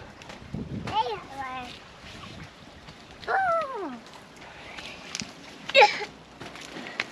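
A young child calls out.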